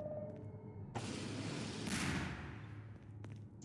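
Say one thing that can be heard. Flames burst out with a loud roaring whoosh.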